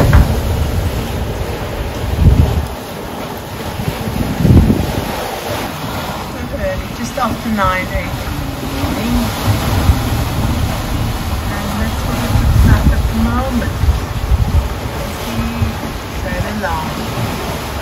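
Waves splash and wash against a boat's hull.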